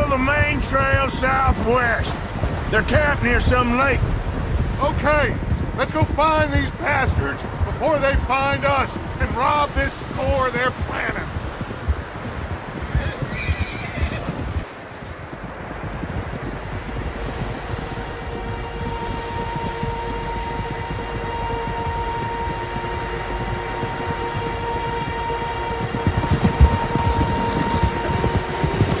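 Wind blows steadily through a snowstorm.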